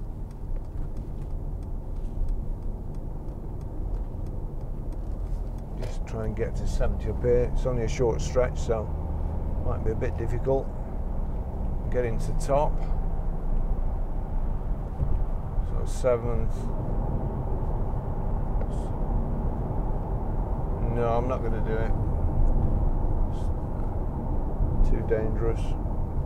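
A car's engine hums steadily inside the car.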